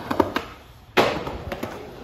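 A skateboard tail slaps down on concrete.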